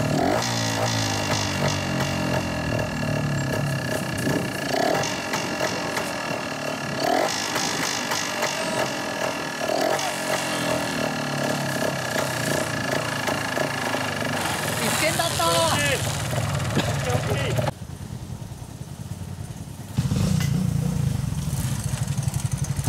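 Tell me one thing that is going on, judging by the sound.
A small motorcycle engine revs in short bursts.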